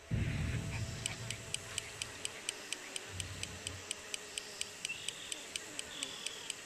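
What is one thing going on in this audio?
A fishing reel clicks rapidly as the line is wound in.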